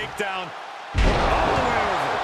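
A body slams heavily onto a wrestling mat with a loud thud.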